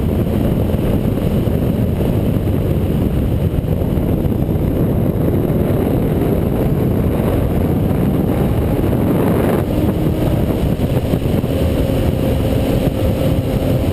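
Wind roars loudly against a helmet microphone.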